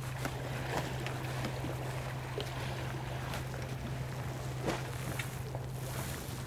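Small waves lap against rocks outdoors.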